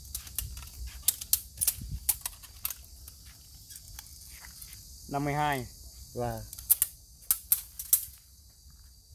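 A tape measure clicks and rattles.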